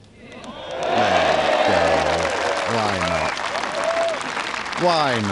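Men in the crowd shout excitedly.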